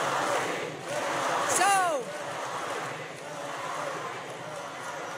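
A large crowd cheers and shouts loudly.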